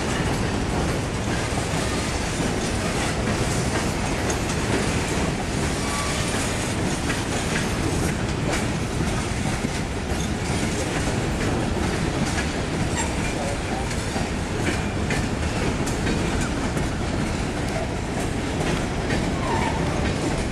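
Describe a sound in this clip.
Steel wheels clank and squeal over the rail joints.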